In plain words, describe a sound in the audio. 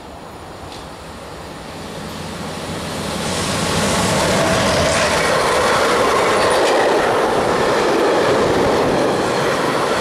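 A second freight train approaches and roars past close by, its wagons clattering over the rails.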